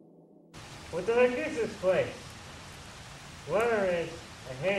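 A young man talks nearby outdoors.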